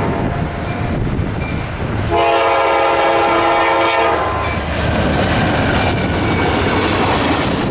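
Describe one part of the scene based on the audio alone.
A diesel locomotive engine roars as it passes close by.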